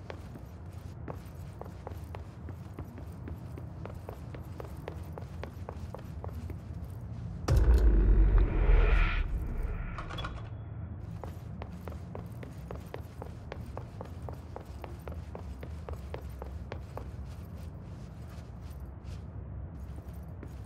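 Quick footsteps run across a hard floor.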